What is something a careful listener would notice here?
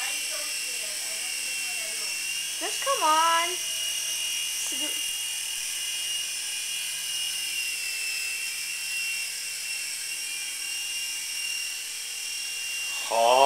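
A toy helicopter's small motor whines steadily with a high buzz as it hovers close by.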